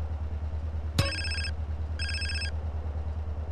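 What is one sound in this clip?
A mobile phone rings with a short electronic tune.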